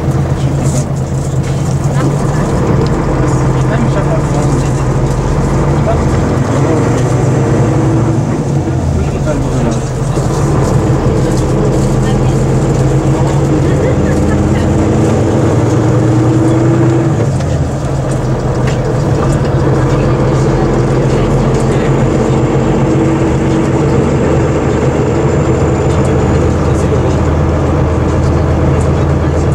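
A bus engine hums and drones steadily from inside the bus.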